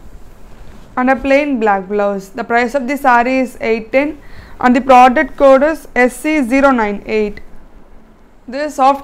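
A young woman speaks clearly and with animation close to a microphone.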